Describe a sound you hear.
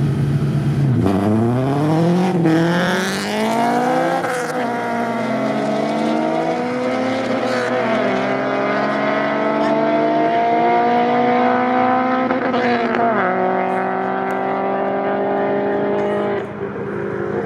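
A car engine roars as the car speeds away, its pitch climbing and dropping with each gear change.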